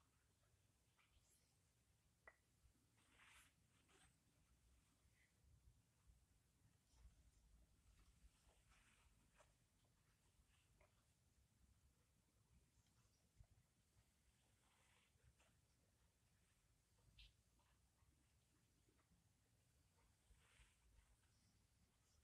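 A knife blade scrapes softly in short strokes along a sharpening strip.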